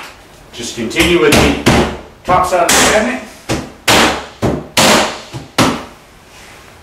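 A mallet knocks on a wooden panel several times.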